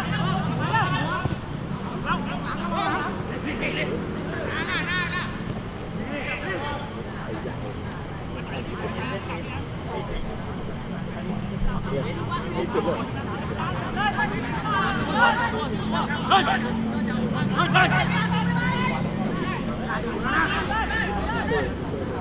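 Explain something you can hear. Young men shout and call out to each other across an open outdoor field.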